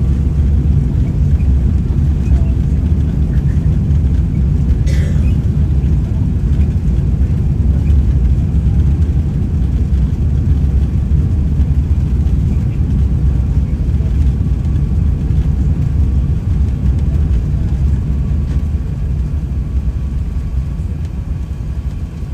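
Jet engines roar steadily with a deep rumble.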